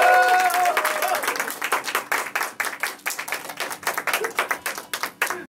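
A man claps his hands in a quick, steady rhythm.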